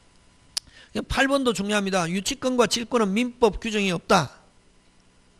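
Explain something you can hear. A middle-aged man speaks calmly into a microphone, lecturing.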